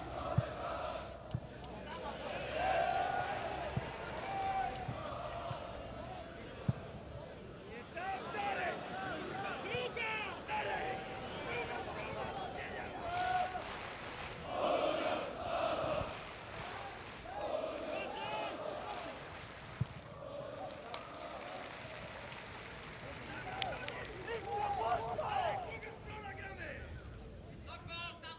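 A crowd in a large stadium chants and cheers throughout.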